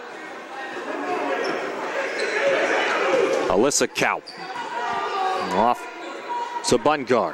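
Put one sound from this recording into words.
A crowd cheers and murmurs in a large echoing gym.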